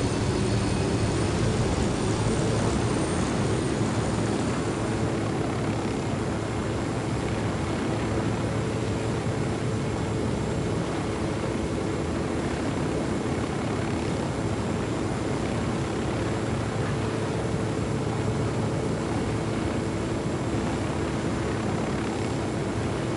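A helicopter's rotor thumps and its engine drones steadily close by.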